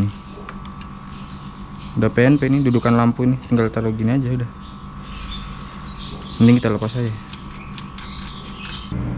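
Metal parts clink and rattle softly as they are handled.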